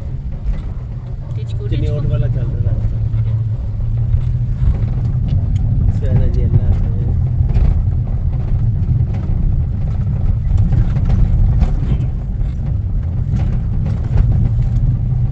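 A vehicle's engine rumbles steadily while driving on a rough dirt road.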